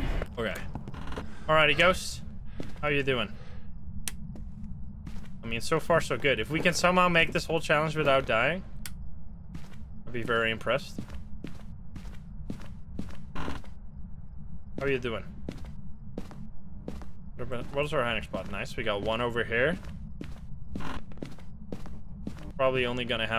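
A young man talks calmly into a close microphone.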